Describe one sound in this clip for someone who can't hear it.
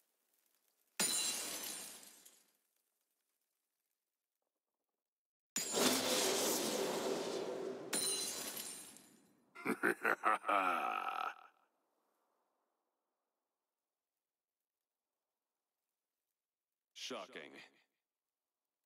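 Loud game effects whoosh and burst in sudden blasts.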